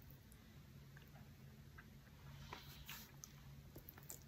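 A man slurps noodles close to the microphone.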